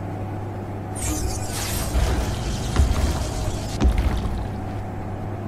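A swirling portal crackles and whooshes open.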